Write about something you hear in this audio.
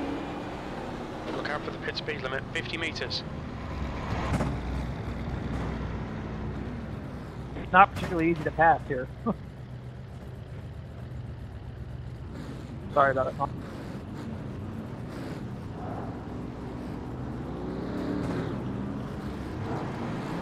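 A race car engine idles and rumbles low.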